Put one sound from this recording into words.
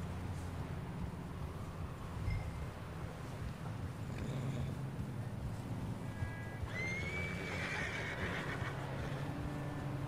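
Horses gallop on snow, hooves thudding softly.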